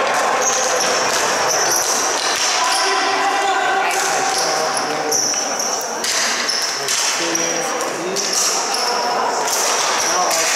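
Young players shout to each other across a large echoing arena.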